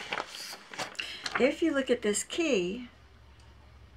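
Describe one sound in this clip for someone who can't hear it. A middle-aged woman speaks briefly and with animation, close to the microphone.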